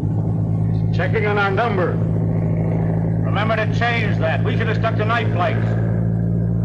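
A man shouts over the engine noise.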